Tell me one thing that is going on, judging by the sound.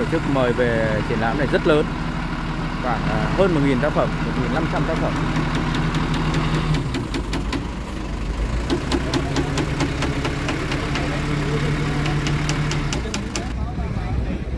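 A truck crane's engine hums steadily.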